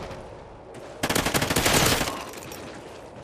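A gun fires rapid bursts of shots close by.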